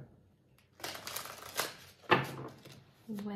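Playing cards are shuffled with a quick riffling rustle.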